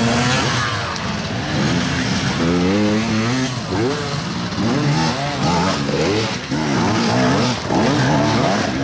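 Dirt bike engines rev up and down, rising and falling in pitch close by.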